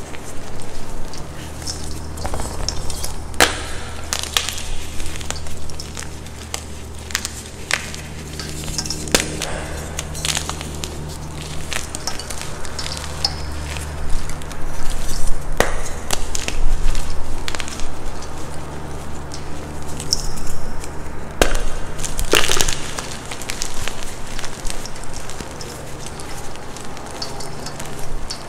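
Loose powder rustles and pours between fingers.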